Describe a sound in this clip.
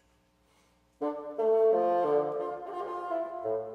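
A bassoon plays a melody in a large, echoing hall.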